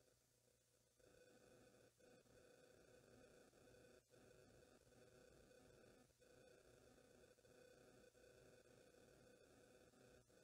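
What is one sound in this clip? An electric keyboard plays sustained notes.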